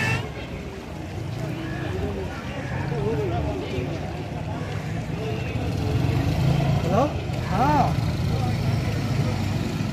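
Men and women chatter nearby outdoors.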